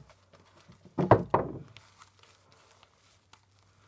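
Plastic sheeting rustles and crinkles.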